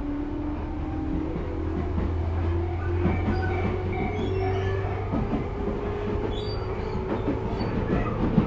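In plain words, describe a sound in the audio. A train rumbles steadily along the rails close by.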